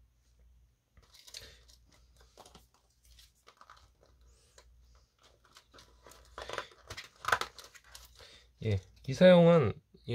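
Cardboard coin holders and a plastic sleeve rustle and tap as they are handled.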